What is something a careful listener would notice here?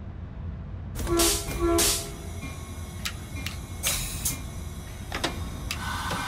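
A brake handle clicks and clunks in a cab.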